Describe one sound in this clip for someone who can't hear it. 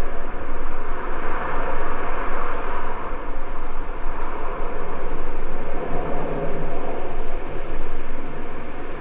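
Wind rushes and buffets steadily.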